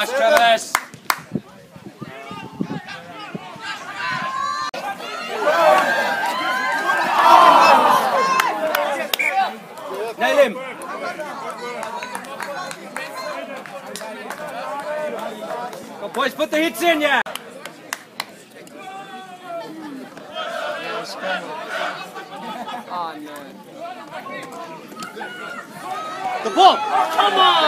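Spectators shout and cheer outdoors around a sports field.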